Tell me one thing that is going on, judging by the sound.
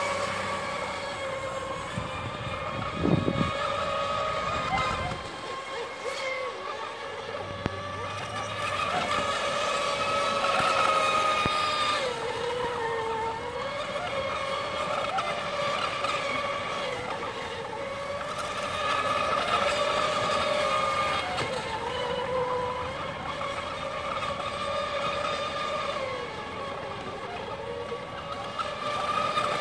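Small model boat motors whine at high pitch as they race across the water, rising and falling in pitch.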